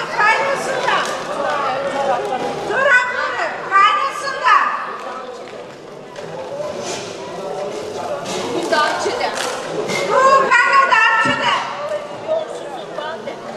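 Several women chatter nearby.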